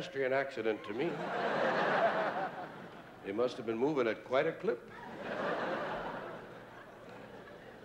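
An audience laughs loudly in a large hall.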